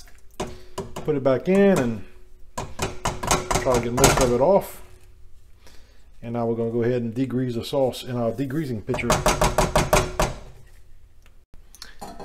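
A metal strainer scrapes against a metal pot.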